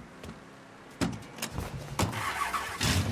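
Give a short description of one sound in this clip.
A car door opens with a clunk.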